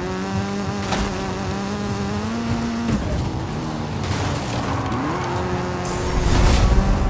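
A car engine roars and revs as the car speeds along.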